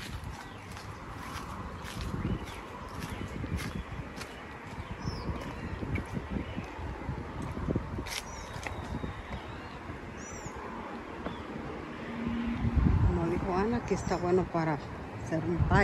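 Footsteps climb stone steps outdoors.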